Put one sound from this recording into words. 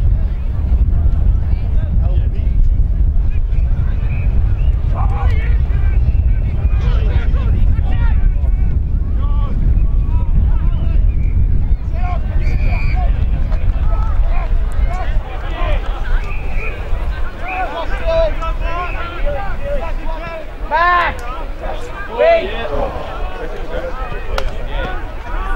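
Young men shout and call out to each other across a field.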